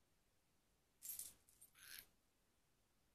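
A hand rubs and bumps against the microphone.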